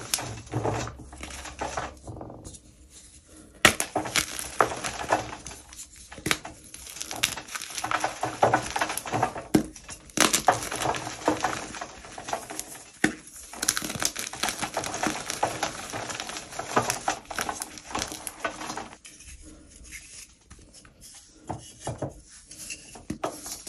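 Hands crumble chalky blocks that crunch and crackle.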